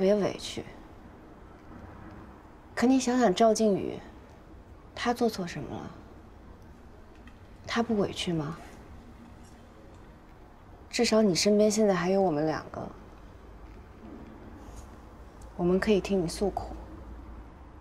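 A young woman speaks gently and earnestly.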